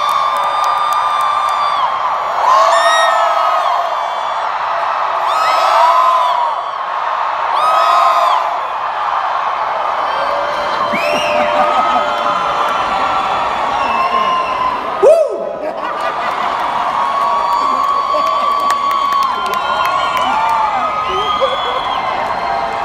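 A large crowd screams and cheers loudly in a huge echoing arena.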